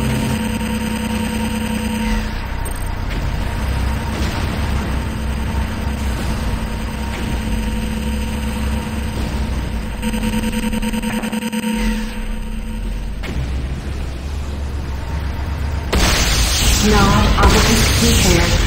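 An engine hums low and steady.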